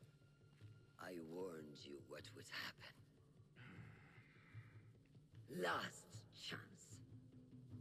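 An older woman speaks sternly and threateningly.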